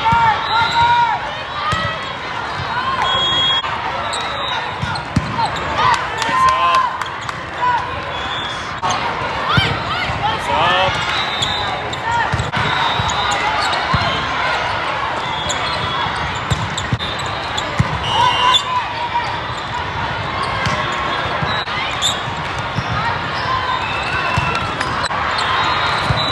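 Young women players call out and shout to one another.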